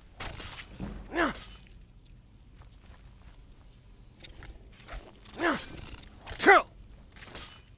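A giant spider lets out shrill, falling shrieks.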